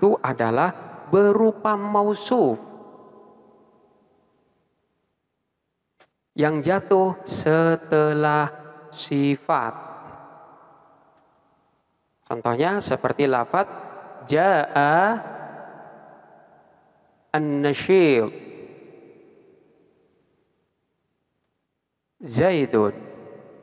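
A man speaks calmly through a microphone, with a long echo after each phrase.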